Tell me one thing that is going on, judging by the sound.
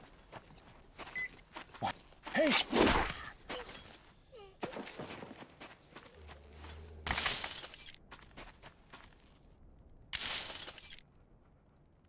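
A rifle fires in loud short bursts.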